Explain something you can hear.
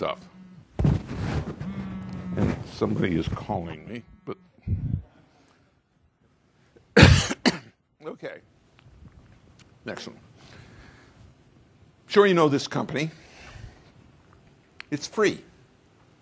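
An older man speaks into a microphone in short bursts with pauses, heard through loudspeakers in a large hall.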